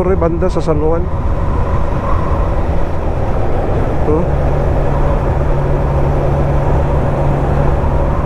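Wind rushes past the microphone.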